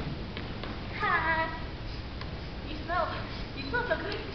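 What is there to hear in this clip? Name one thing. Young women talk and laugh, heard from a distance in a large hall.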